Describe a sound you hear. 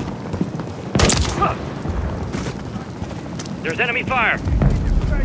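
Gunshots crack in the distance.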